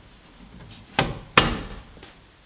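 A wooden lid shuts with two sharp thuds.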